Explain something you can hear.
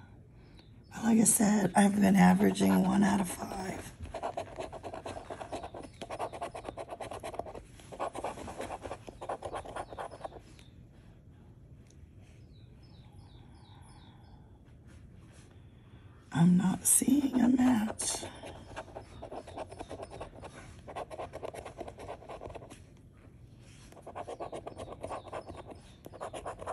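A coin scratches across a scratch card with a dry, raspy scraping.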